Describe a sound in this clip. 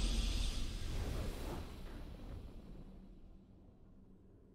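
A triumphant game victory sound swells and then slowly fades away.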